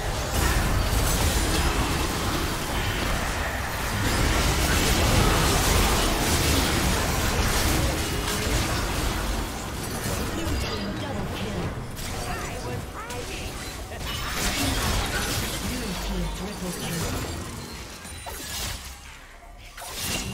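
Game spell effects crackle, whoosh and burst in a hectic fight.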